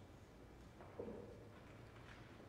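An organ sounds a brief, soft note in a large echoing hall.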